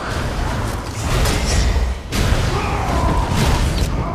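A bright magical blast roars down with a rumble.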